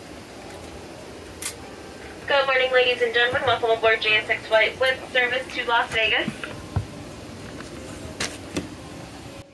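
A steady low engine drone hums inside an aircraft cabin.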